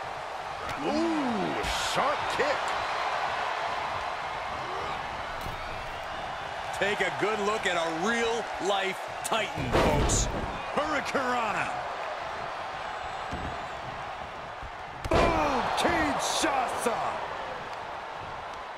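A crowd cheers in a large arena.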